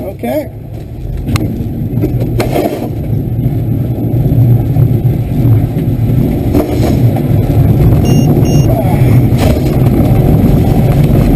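A glider's wheel rumbles and bumps over a rough runway.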